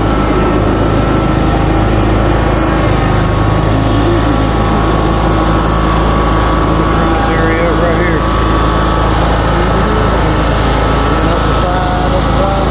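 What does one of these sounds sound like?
A lawn mower engine drones loudly and steadily close by.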